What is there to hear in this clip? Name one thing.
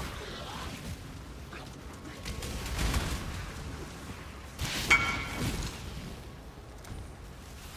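Magic spells burst and crackle in a game.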